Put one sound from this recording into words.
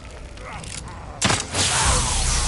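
A crossbow fires a bolt with a sharp snap.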